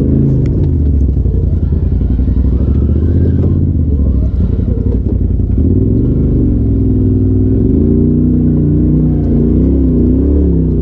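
An off-road vehicle's engine rumbles and revs up and down close by.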